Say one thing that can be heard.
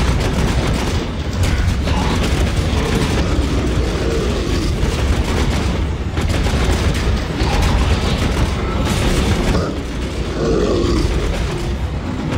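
Automatic gunfire rattles rapidly in a game.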